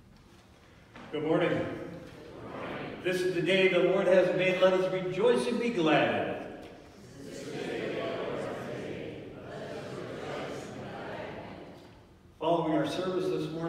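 An elderly man speaks in a raised, chanting voice in a large echoing hall.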